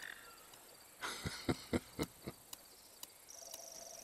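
An older man laughs softly.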